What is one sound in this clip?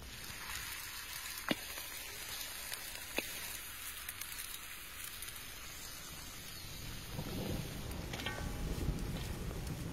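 Pieces of raw meat thump softly into a metal pot.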